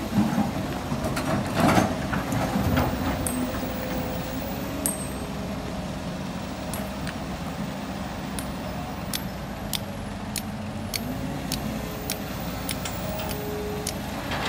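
An excavator engine rumbles steadily nearby.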